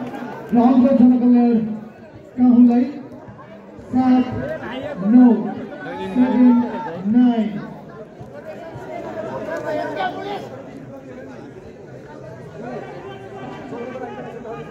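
A large crowd of spectators chatters and cheers outdoors.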